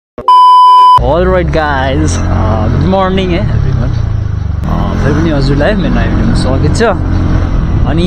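A scooter engine drones steadily while riding along a road.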